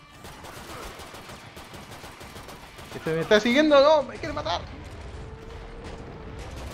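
Pistols fire rapid shots.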